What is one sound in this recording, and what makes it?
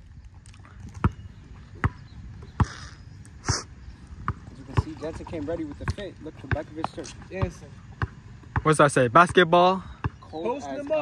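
A basketball bounces sharply on an outdoor court.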